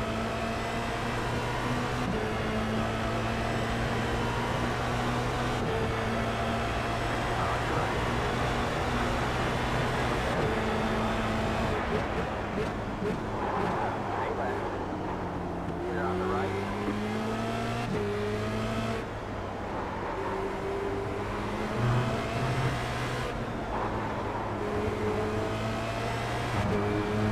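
A race car engine roars and whines as it shifts up and down through the gears.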